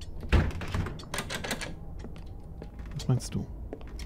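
A locked door handle rattles briefly.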